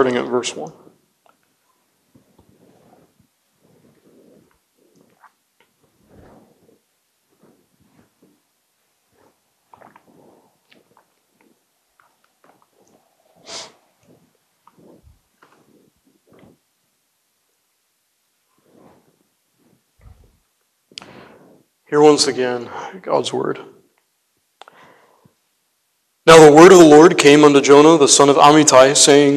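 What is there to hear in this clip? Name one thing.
A young man speaks into a microphone, with long pauses and then loudly.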